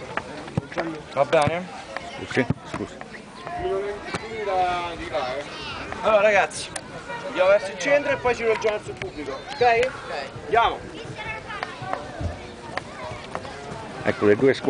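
Young men talk and shout nearby outdoors.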